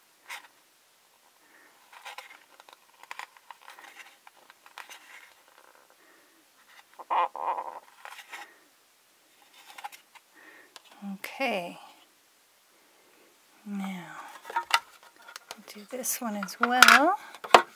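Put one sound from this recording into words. Small plastic toy pieces click and tap together.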